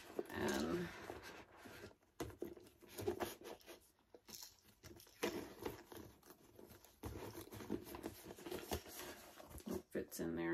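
A leather bag rustles and knocks as it is handled.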